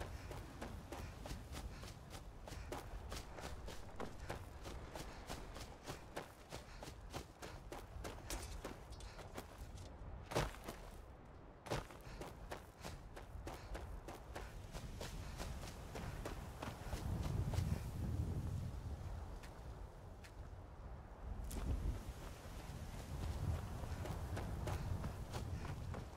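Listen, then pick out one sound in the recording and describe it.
Footsteps crunch steadily over grass and dirt.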